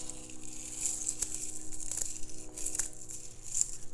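Scissors snip through herb stems.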